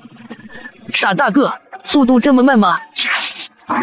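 A young man speaks in a lively, exaggerated voice.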